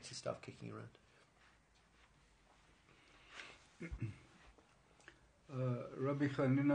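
A middle-aged man speaks calmly close to the microphone, with pauses.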